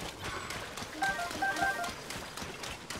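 A short bright chime plays as an item is picked up.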